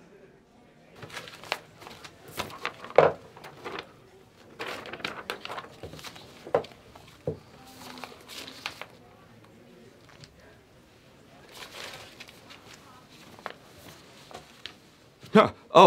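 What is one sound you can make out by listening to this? Papers rustle and shuffle on a desk.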